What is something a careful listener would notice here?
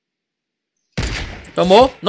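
A sniper rifle fires a loud shot.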